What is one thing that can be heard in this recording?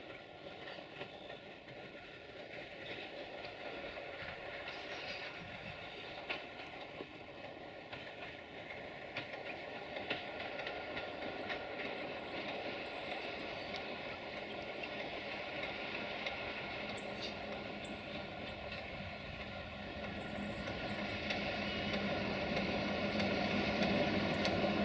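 A diesel locomotive rumbles steadily closer, growing louder.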